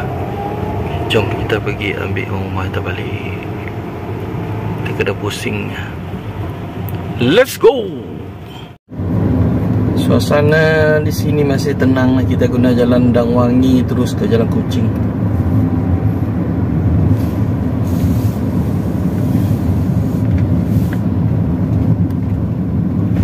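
Road noise hums inside a moving car.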